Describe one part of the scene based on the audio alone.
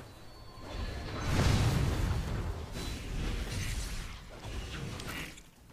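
Fighting characters clash with bursts of magic blasts and hits.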